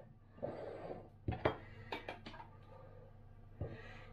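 A metal lid clicks against a glass jar.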